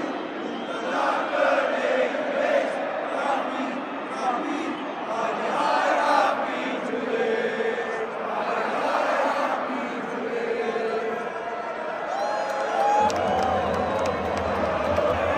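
A large stadium crowd sings and chants loudly together, echoing under the roof.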